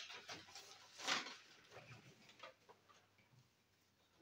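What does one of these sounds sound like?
Papers rustle as they are handled.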